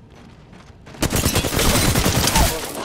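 A gun fires rapidly in loud bursts.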